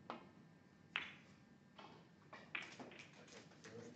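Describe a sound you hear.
A snooker cue strikes the cue ball with a sharp click.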